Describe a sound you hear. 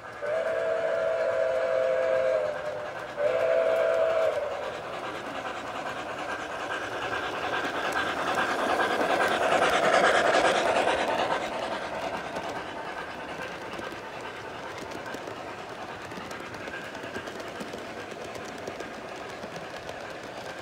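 A model train rolls past on its track, rumbling and clattering louder as it passes close.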